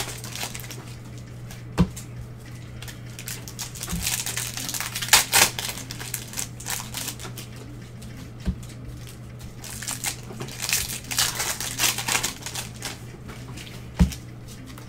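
Cardboard and paper rustle as cards are shuffled and handled.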